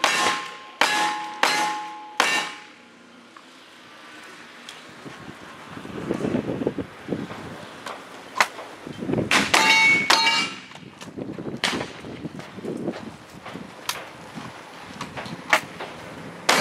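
Gunshots crack loudly in quick bursts outdoors.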